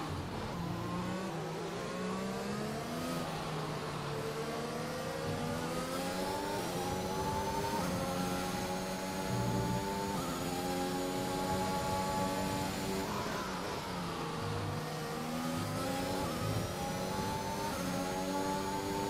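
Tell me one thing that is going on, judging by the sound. A racing car engine screams at high revs, rising and dropping in pitch as it shifts gears.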